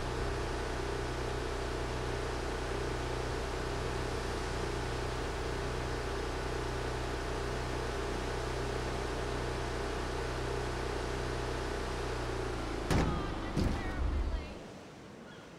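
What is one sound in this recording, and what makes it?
A boat engine hums steadily, then cuts out.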